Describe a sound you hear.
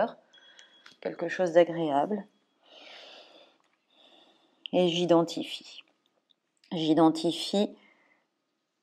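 A young woman speaks calmly and softly into a close microphone.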